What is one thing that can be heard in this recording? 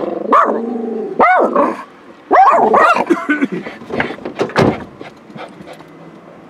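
A car drives past outside, muffled through the windows.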